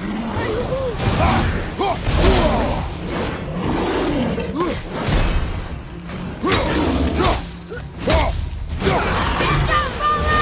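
Metal weapons clash and strike in a fight.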